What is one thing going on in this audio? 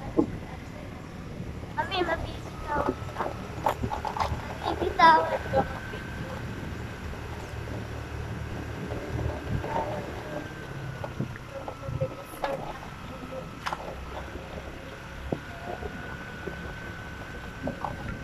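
A young boy talks close by.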